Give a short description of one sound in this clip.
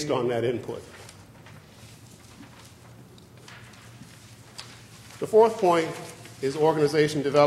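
A middle-aged man speaks calmly and deliberately into a microphone, with pauses.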